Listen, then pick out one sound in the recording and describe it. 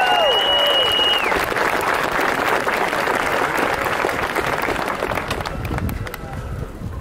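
A large crowd applauds.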